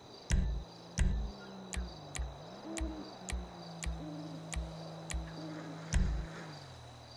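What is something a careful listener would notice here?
A game menu beeps and clicks.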